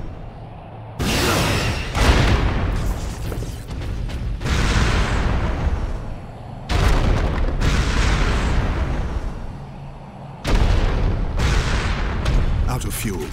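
A heavy hammer smashes down with loud crashing blasts.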